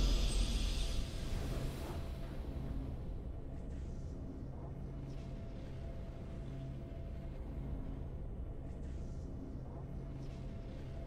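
Soft victory music plays in a video game.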